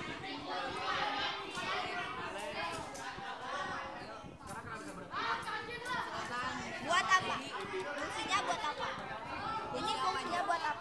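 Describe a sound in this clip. Teenage boys talk with animation close by.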